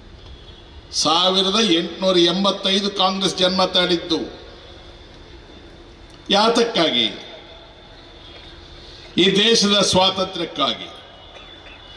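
An elderly man speaks forcefully into a microphone over loudspeakers, in short bursts.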